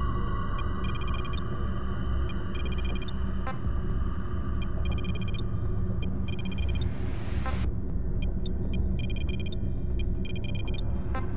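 Soft electronic menu ticks sound in quick bursts.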